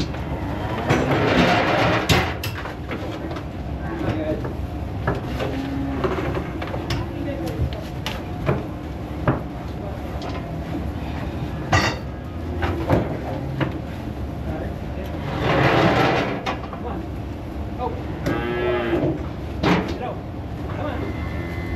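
Cows moo.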